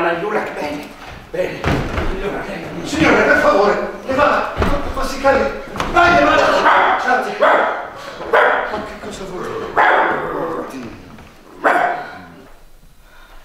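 Several men shout excitedly on a stage.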